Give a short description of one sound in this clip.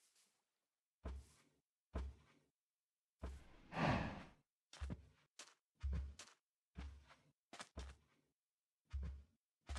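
Footsteps tread on stone and grass.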